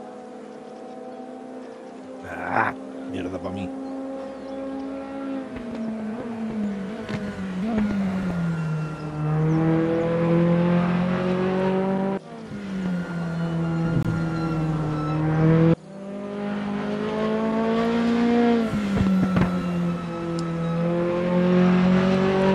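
A race car engine revs loudly, rising and dropping as it shifts gears.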